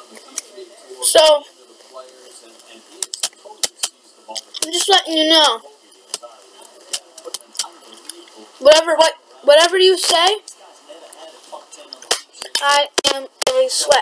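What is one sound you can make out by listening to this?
A young boy speaks close to the microphone in short bursts.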